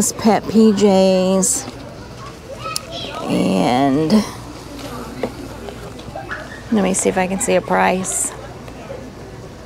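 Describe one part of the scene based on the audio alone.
Stiff card packaging rustles and taps as a hand handles it.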